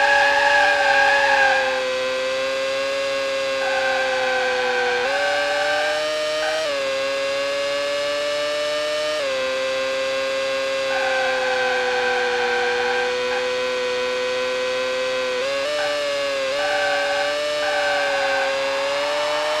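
A racing car engine whines at high speed, dropping in pitch at each gear change.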